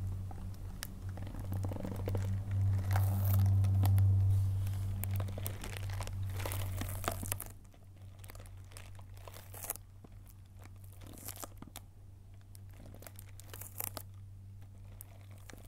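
Cellophane wrapping crinkles under fingers.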